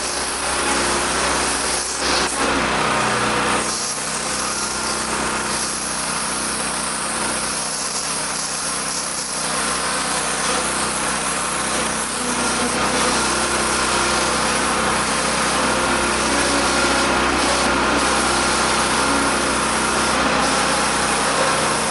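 Metal clanks as workers handle a railway car.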